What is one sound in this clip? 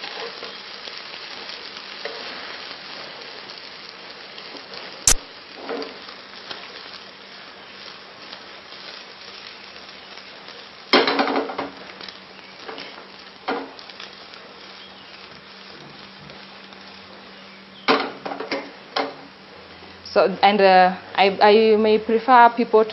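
An egg sizzles in oil in a frying pan.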